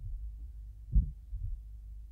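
A door bumps softly as it opens.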